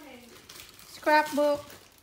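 A plastic wrapper crinkles in a boy's hands.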